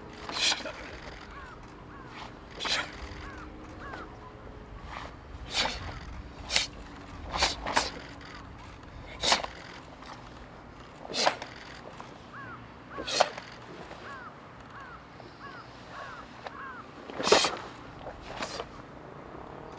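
A stiff cloth uniform snaps sharply with quick punches and kicks.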